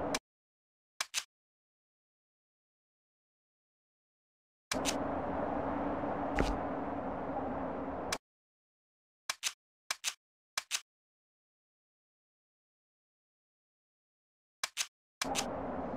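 Short electronic clicks sound as menu items are picked.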